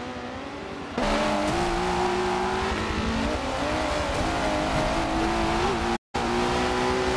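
A car engine revs loudly up close, rising and falling through the gears.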